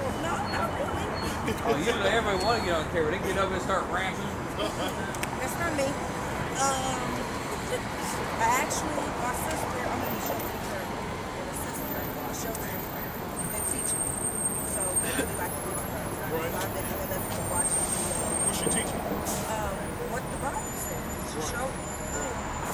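Street traffic hums steadily in the background.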